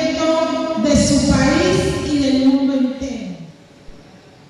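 A woman sings into a microphone with a strong, sustained voice.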